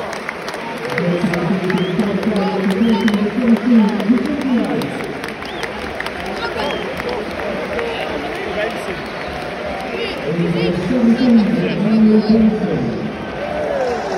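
A stadium crowd sings loudly together.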